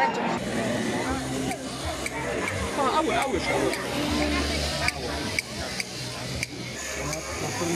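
Shears clip through a sheep's fleece.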